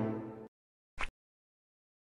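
A soft click sounds once.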